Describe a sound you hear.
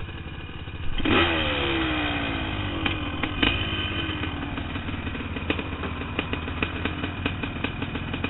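A dirt bike engine revs up loudly and pulls away.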